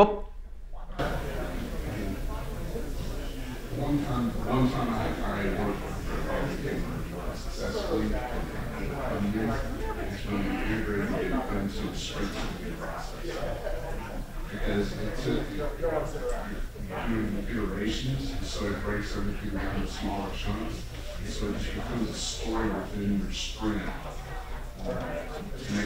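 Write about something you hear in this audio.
A man speaks calmly through a microphone in a large hall.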